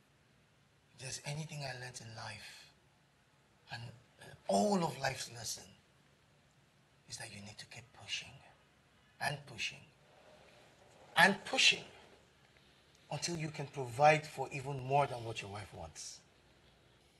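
A second man answers calmly, close by.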